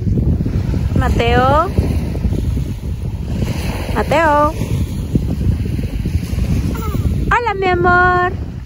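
A little boy squeals and babbles in a high voice close by.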